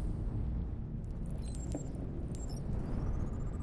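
Short electronic blips and beeps chirp.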